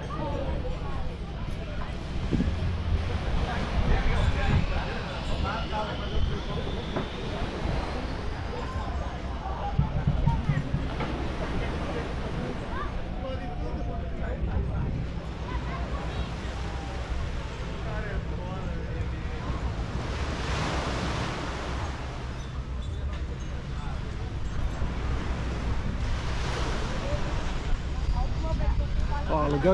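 Distant voices of people chatter outdoors.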